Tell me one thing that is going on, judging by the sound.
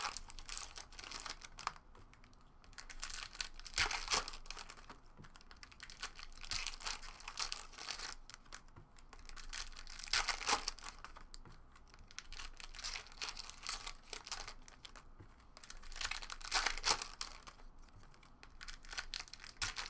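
Foil card wrappers crinkle and rustle as they are handled.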